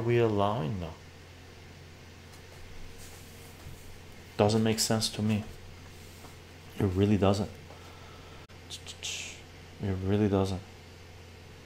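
An elderly man speaks calmly and close up, in short phrases with pauses.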